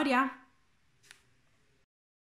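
A stiff paper page is handled with a soft rustle.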